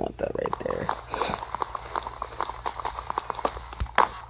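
Blocks crack and thud repeatedly as they are dug out.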